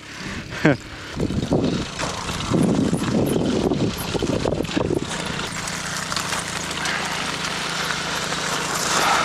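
Bicycle tyres roll over gravel.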